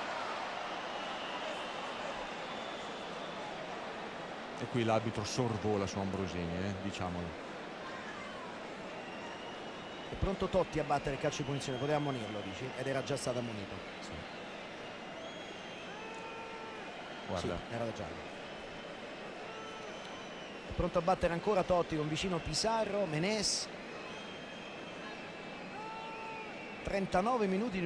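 A large stadium crowd roars and chants steadily in the distance.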